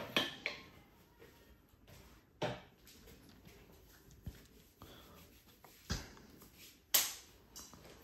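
Hands tap and slap sharply on a person's back.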